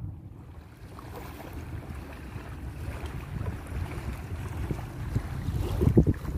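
Wind blows hard outdoors with a low rumble.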